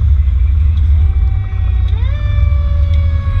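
A motorcycle engine revs up and rises in pitch as it pulls away.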